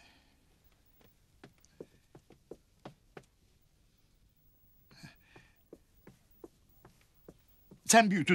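Footsteps tap softly across a floor.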